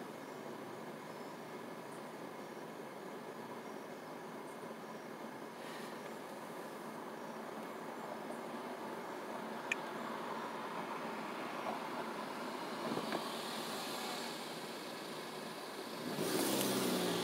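A car engine idles, heard from inside the car at a stop.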